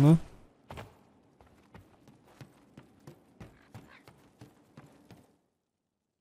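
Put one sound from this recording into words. Footsteps patter quickly on wooden boards.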